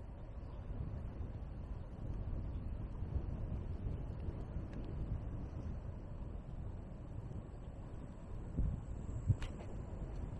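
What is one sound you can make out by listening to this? Wind rumbles against a moving vehicle outdoors.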